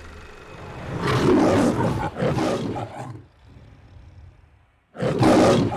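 A lion roars loudly, twice.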